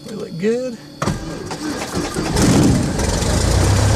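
A small aircraft engine cranks and sputters into life.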